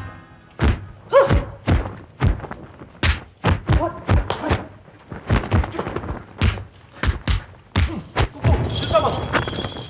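Sharp whooshes and thumps ring out again and again.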